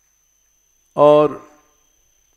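An elderly man speaks a short word calmly into a close microphone.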